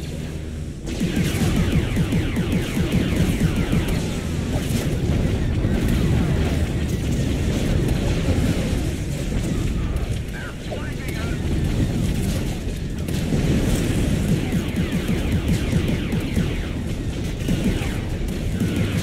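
Blaster guns fire rapid laser shots.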